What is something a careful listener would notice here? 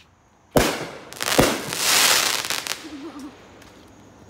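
Firework sparks crackle and fizz.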